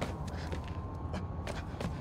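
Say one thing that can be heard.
Footsteps crunch on snowy ground.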